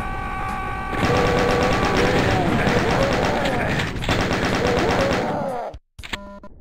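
A machine gun fires in rapid, rattling bursts.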